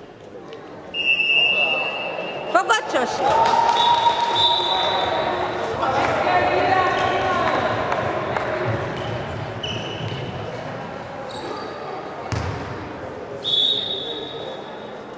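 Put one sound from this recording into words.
A referee's whistle blows in short sharp blasts in a large echoing hall.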